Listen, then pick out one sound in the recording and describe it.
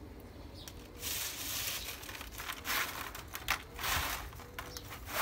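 Dry peels rustle and crackle as hands sort them.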